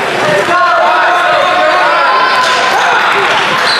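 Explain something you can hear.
A basketball bounces on a hardwood floor in a large echoing hall.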